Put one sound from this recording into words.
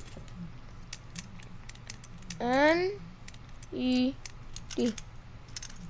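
A combination lock dial clicks as it turns.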